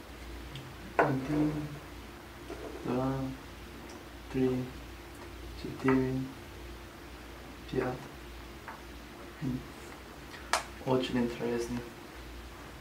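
A man speaks calmly close by, in short phrases.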